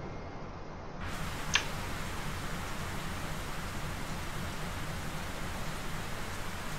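Rain falls steadily on water.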